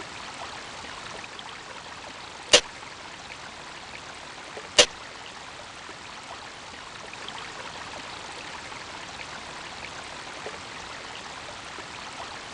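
Water trickles and flows steadily through a tunnel.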